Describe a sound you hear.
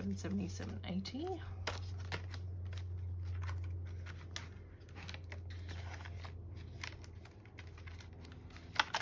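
Paper money and plastic sleeves rustle and crinkle as hands sort them.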